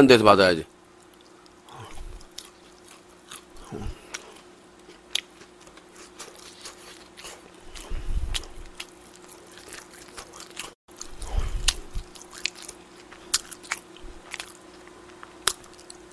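A young man chews and smacks on food close to a microphone.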